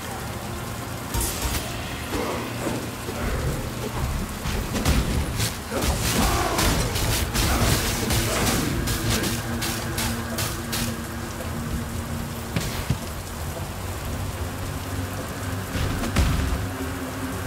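Spells crackle and burst in quick bursts during a fight.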